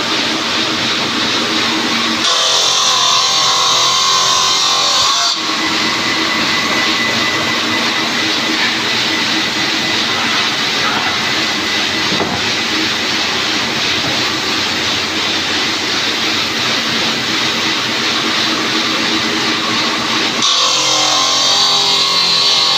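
A machine motor hums steadily throughout.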